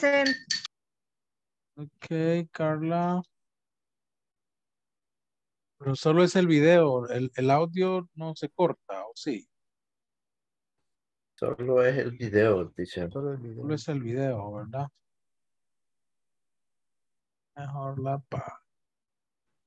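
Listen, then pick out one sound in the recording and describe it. A man speaks over an online call, in short bursts with pauses.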